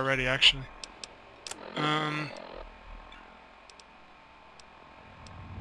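Soft electronic clicks tick.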